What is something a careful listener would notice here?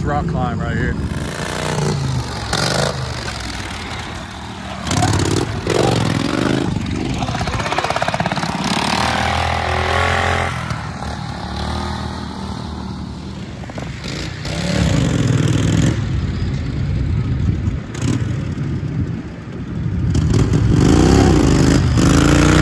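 A small quad bike engine revs and roars.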